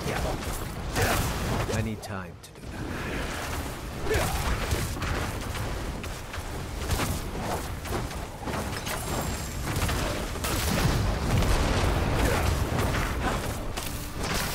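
Fiery spells whoosh and burst in a video game.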